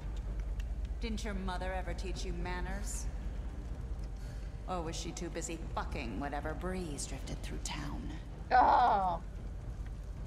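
A young woman speaks tauntingly, close by.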